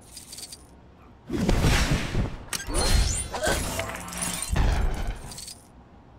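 Objects burst apart with a sharp clatter.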